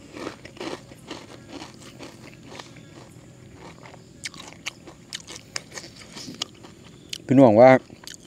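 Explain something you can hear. A man chews and smacks his lips close up.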